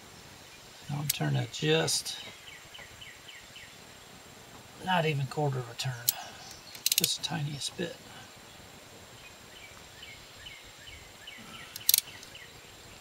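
A wrench clicks against metal.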